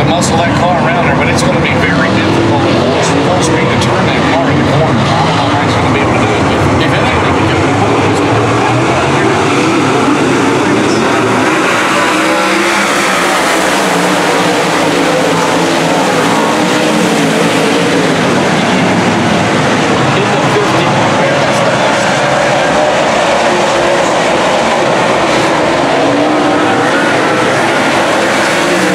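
Many race car engines roar loudly nearby, revving and rising as the cars pass.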